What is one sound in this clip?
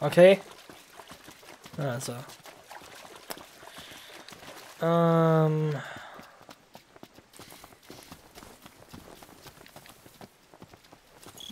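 Footsteps run quickly over soft, damp ground.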